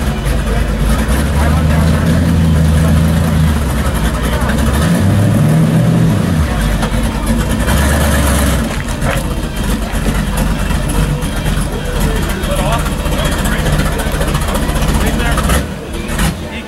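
A race car engine idles with a loud, deep rumble.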